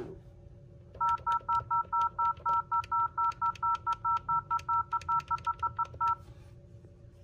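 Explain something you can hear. A desk phone gives a fast run of short, even beeps.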